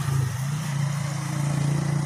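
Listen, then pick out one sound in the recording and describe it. A fruit rind cracks as fingers peel it open.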